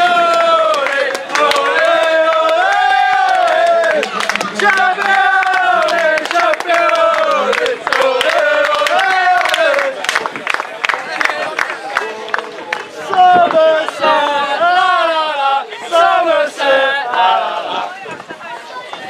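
A group of young men chant and sing loudly together.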